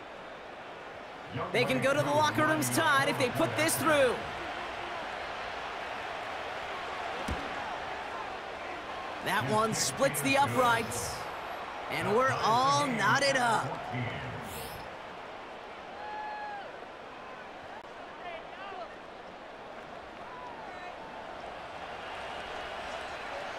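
A stadium crowd murmurs in the distance.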